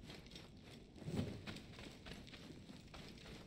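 Cobwebs tear with a rustle.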